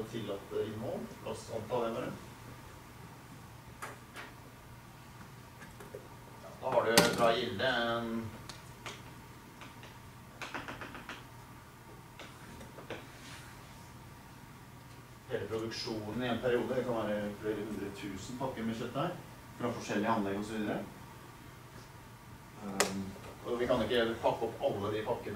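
A middle-aged man lectures calmly in a room with a slight echo.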